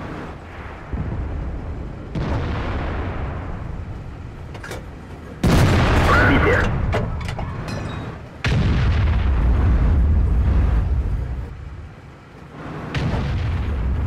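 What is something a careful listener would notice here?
A tank cannon fires with a loud, booming blast.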